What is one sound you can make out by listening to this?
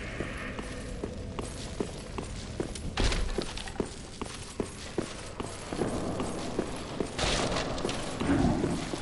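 Blades clash and strike with sharp metallic hits.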